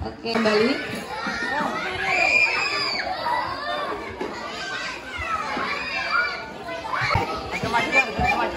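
A crowd of children and women chatters and moves about.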